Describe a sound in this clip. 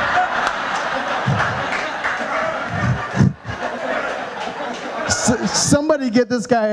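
A crowd laughs and chatters throughout the room.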